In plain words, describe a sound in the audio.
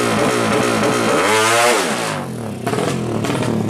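A motorcycle engine roars past close by.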